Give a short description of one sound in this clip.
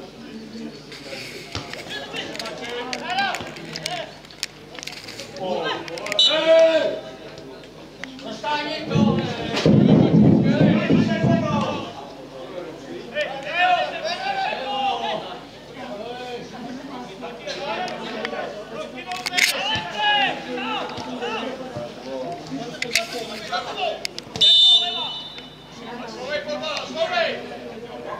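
Men shout and call to each other across an open field.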